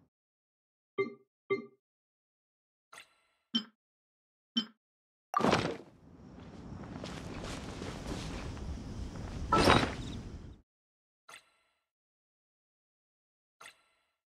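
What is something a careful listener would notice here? Short soft clicks and chimes sound one after another.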